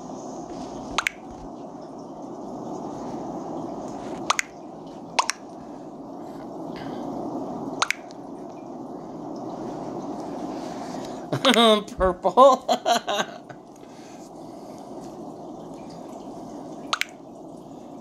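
Short game chat blips pop as new messages arrive.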